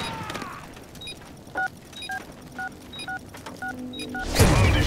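A bomb's timer beeps in quick, even pulses.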